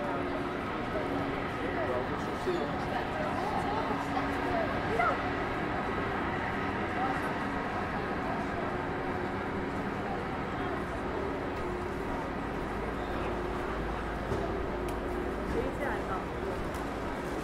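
Voices of a crowd of people chatter in the background outdoors.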